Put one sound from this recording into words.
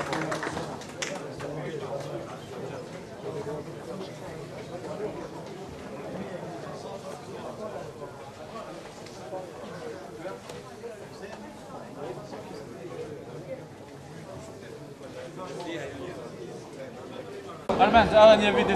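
A crowd murmurs and chatters in a large room.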